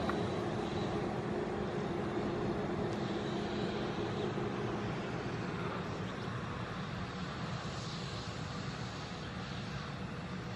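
The turbofan engines of a twin-engine jet airliner hum as it taxis away and slowly fade.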